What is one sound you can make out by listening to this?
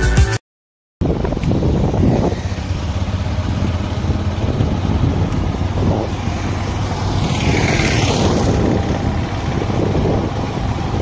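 A motorcycle engine hums as the bike rides along an asphalt road.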